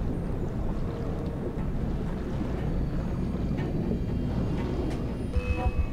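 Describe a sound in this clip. A deep, muffled underwater rumble churns steadily.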